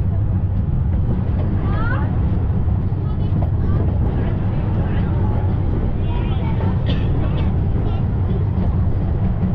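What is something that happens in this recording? A train rumbles steadily along its track.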